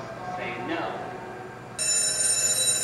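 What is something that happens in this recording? A young woman talks through a television loudspeaker.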